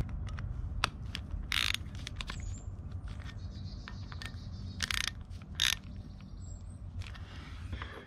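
A ratchet wrench clicks as a bolt is tightened.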